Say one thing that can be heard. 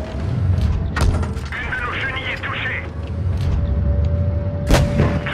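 Tank cannons fire with loud booms.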